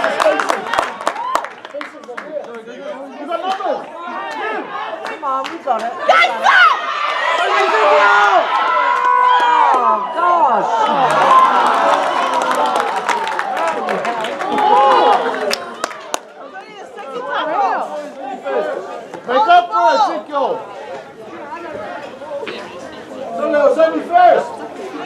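Spectators shout and cheer outdoors.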